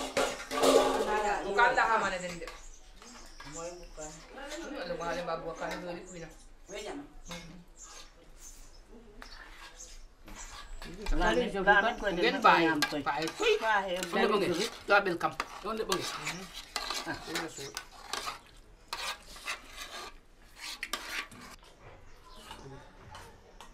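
Spoons scrape and clink against metal bowls.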